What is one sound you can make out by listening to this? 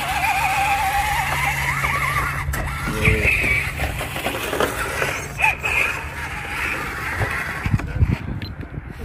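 A small electric motor whines as a toy truck crawls over rocks.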